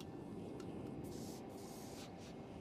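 An aerosol can sprays with a hiss.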